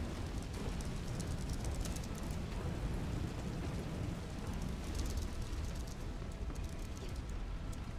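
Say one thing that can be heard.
Footsteps clang on metal scaffolding.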